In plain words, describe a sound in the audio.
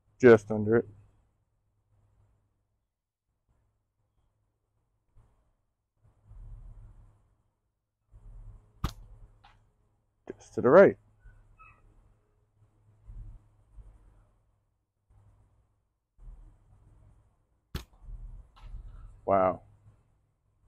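A man speaks briefly in short bursts, close by.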